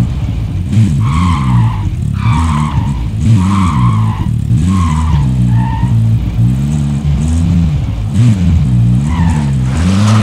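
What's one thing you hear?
An off-road vehicle engine rumbles and revs as it drives along a road.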